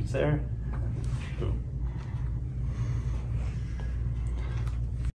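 Fabric rustles as a sheet is tucked and smoothed.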